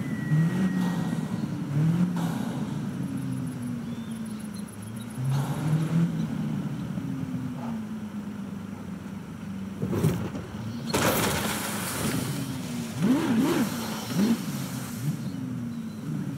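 A sports car engine revs up and down throughout.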